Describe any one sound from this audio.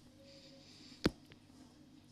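A game menu opens with a short click.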